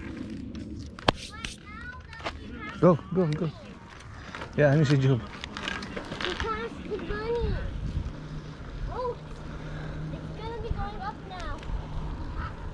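A young girl speaks nearby while riding.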